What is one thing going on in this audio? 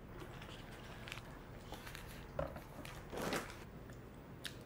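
Plastic wrapping crinkles and rustles as a snack is unwrapped.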